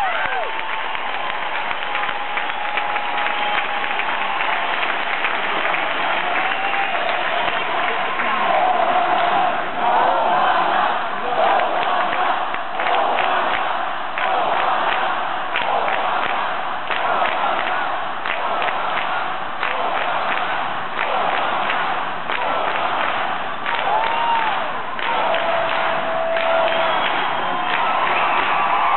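A large crowd cheers and shouts loudly in a big echoing hall.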